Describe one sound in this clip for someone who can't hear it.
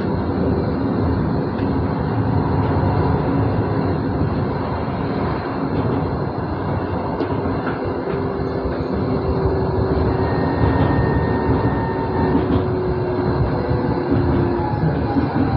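A tram's electric motor hums and whines.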